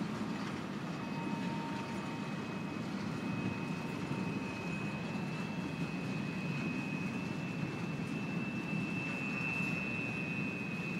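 Train wheels squeal thinly against the rails.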